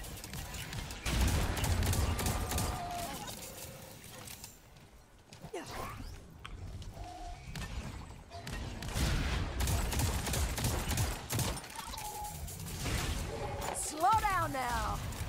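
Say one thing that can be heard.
Gunfire bursts in rapid shots.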